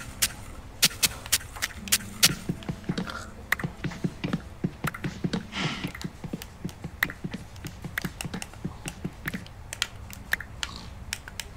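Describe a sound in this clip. Wooden blocks break apart with quick, repeated chopping knocks.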